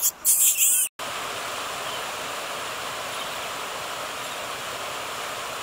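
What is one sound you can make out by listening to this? Warm water trickles and bubbles over stones.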